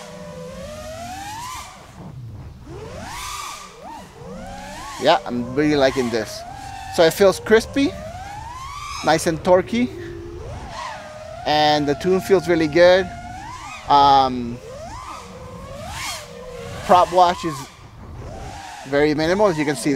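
Drone propellers whine loudly, rising and falling in pitch as the drone swerves through trees.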